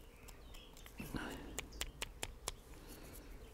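A small knife scrapes softly on wood.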